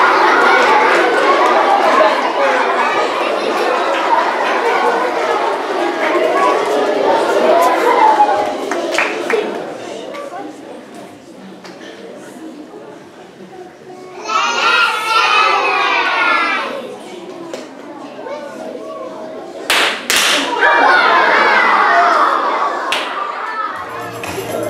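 A group of young children sing together in an echoing hall.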